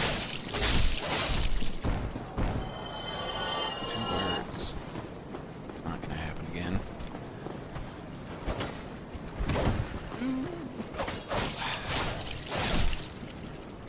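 Sword blows strike enemies with sharp, heavy hits.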